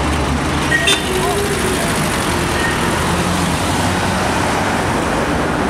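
A pickup truck engine hums as it drives away.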